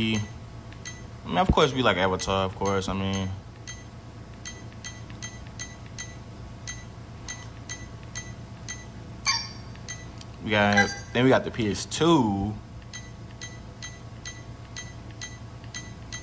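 A handheld game console gives short, quick ticks as its menu scrolls.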